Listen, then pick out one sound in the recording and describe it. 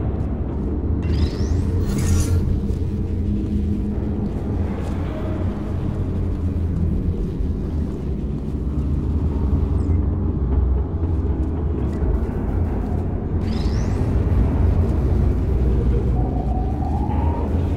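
A low electric hum drones steadily.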